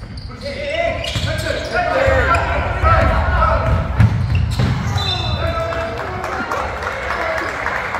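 Young men on the court shout to each other.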